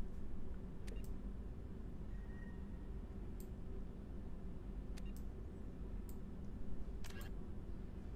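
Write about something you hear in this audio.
Soft electronic clicks sound as menu items are selected.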